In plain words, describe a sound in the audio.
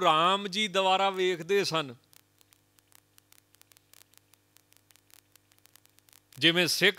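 A man sings in a drawn-out, melodic voice through a microphone.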